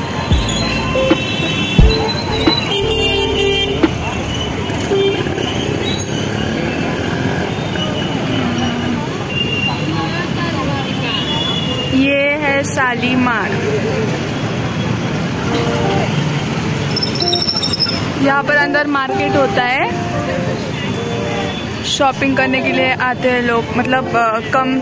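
A crowd of men and women talks and calls out nearby outdoors.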